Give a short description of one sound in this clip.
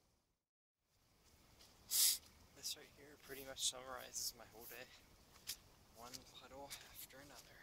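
Footsteps crunch through dry leaves and grass.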